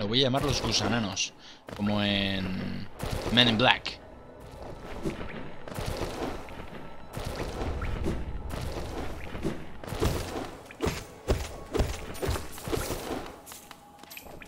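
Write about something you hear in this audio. A blade slashes and thuds against a breaking wall.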